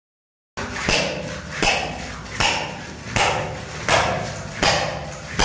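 A hammer strikes a chisel against a hard floor in steady, regular blows.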